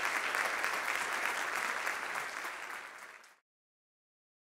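An audience applauds in a large hall, then the applause fades away.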